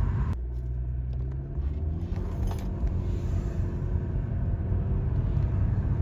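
A car engine speeds up with a rising hum.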